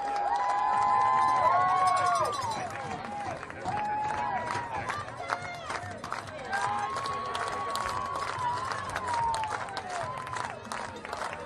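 A crowd of young men cheers and shouts outdoors.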